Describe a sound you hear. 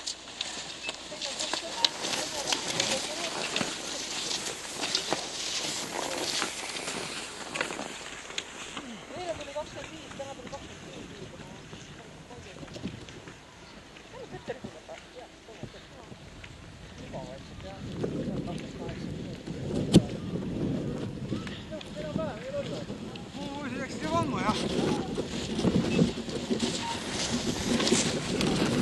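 Skis scrape and hiss over packed snow close by.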